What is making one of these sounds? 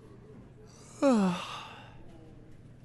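A young man lets out a loud, falling groan close by.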